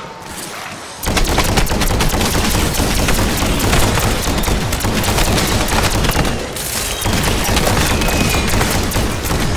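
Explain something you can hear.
Rapid gunfire crackles loudly and steadily.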